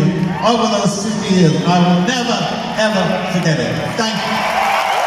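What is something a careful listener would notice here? An older man sings through loudspeakers in a large echoing hall.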